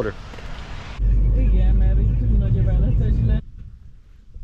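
A car engine rumbles steadily while driving on a road.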